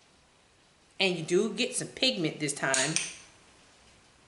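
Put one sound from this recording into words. A woman speaks briefly and calmly, close to a microphone.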